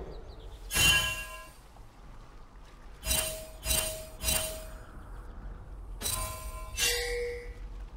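Bright chiming game alerts ring out in short bursts.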